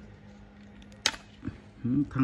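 A battery clicks into a power tool.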